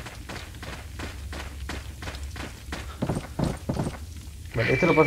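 Footsteps thud quickly across a wooden bridge.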